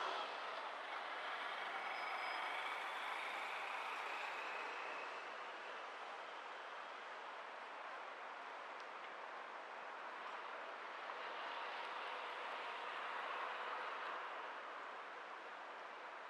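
Traffic hums steadily in a city street.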